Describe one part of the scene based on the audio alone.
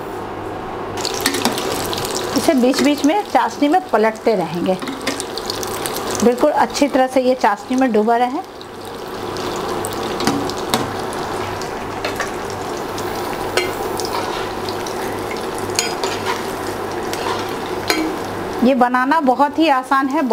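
Oil sizzles steadily as bread fries.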